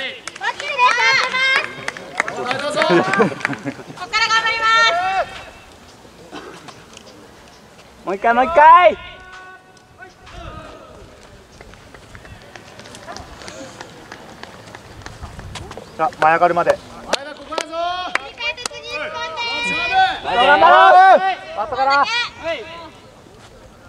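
Young men shout energetically outdoors.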